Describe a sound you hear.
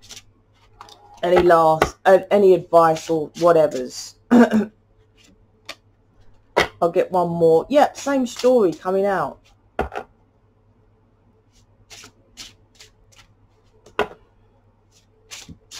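Playing cards are shuffled by hand with soft riffling sounds.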